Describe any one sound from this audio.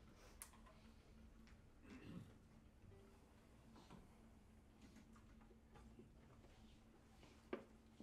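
An audience murmurs quietly.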